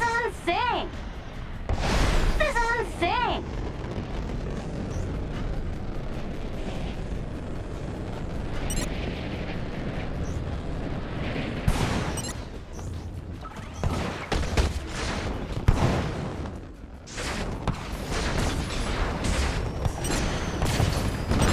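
Jet thrusters roar and hiss steadily, with sudden loud bursts.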